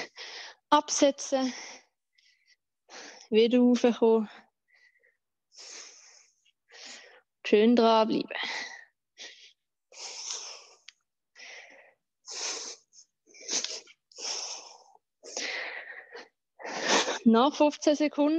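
A young woman talks energetically through a microphone, slightly out of breath.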